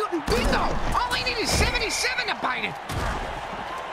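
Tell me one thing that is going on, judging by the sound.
Players crash together in a heavy tackle.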